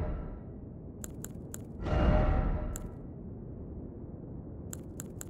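Menu clicks tick sharply.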